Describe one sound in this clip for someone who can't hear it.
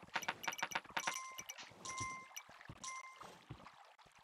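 Short electronic chimes ring out from a video game.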